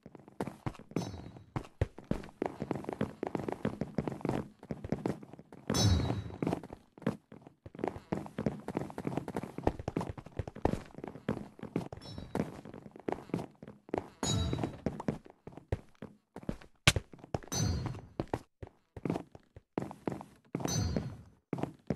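A bright chime rings as coins are picked up.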